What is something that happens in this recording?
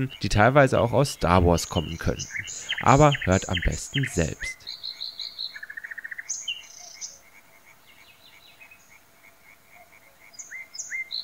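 A songbird sings nearby with clear whistles and fast trills.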